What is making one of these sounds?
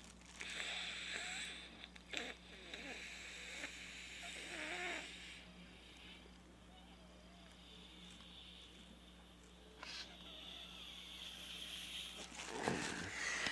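A young man sniffs hard through his nose.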